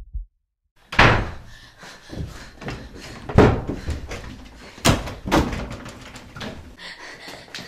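A wooden wardrobe door opens and knocks.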